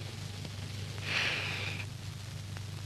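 A woman speaks briefly, close by, through an old, muffled recording.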